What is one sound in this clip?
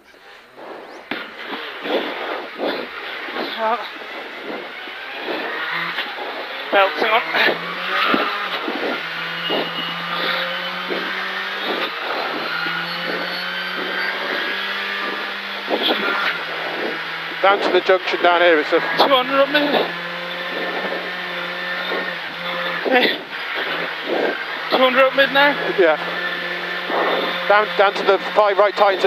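A man reads out notes quickly through an intercom.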